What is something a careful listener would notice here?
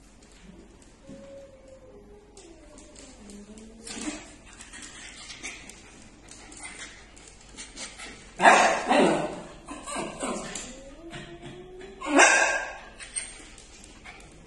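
A small dog yowls and whines nearby in wavering, rising and falling tones.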